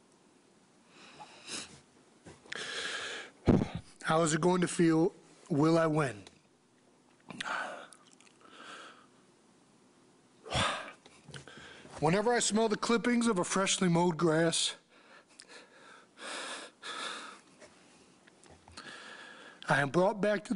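A man sniffles and breathes heavily between words.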